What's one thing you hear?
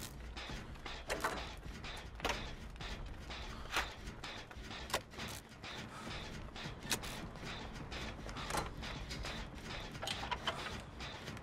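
Metal parts clank and rattle as a machine is worked on by hand.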